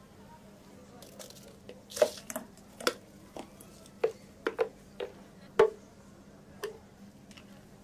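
A thick drink pours out of a jug into a cup.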